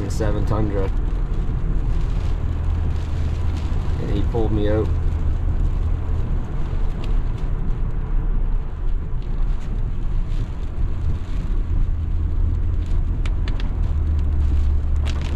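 Windshield wipers swish and squeak across the glass.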